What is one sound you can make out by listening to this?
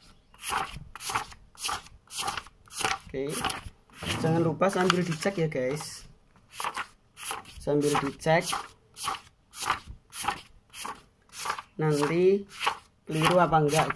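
Sheets of paper flick and rustle in a quick, even rhythm.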